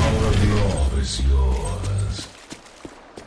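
A deep rumbling blast booms and fades.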